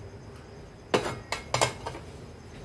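A spoon clinks against the rim of a bowl.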